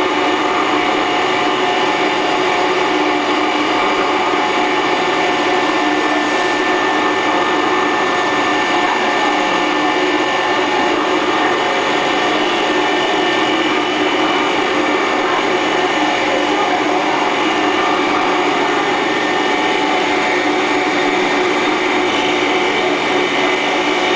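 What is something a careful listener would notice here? A colloid mill motor runs with a loud, steady whine and hum.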